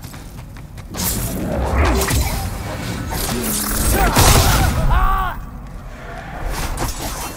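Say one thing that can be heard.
A magic spell crackles and bursts with a loud roar.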